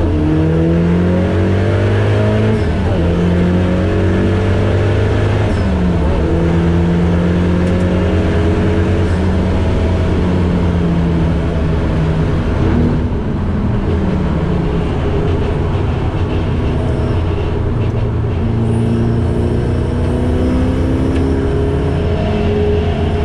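Tyres hum and rush over a racetrack surface.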